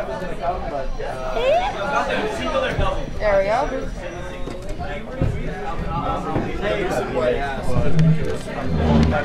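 A crowd of young men and women chatter loudly nearby.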